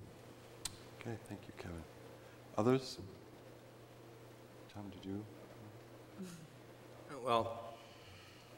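A man speaks through a microphone in short, halting bursts.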